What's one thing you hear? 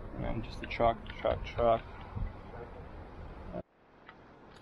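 A young man talks nearby outdoors.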